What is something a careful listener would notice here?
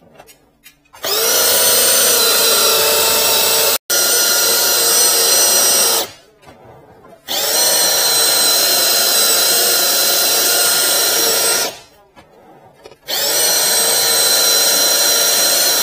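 An electric drain cleaning machine whirs as it spins its cable in short bursts.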